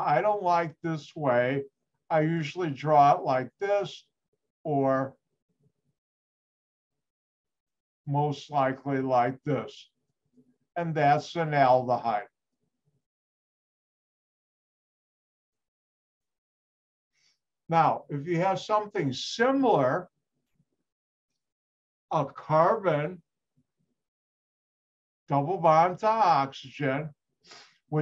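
An older man talks calmly in bursts through a microphone in an online call.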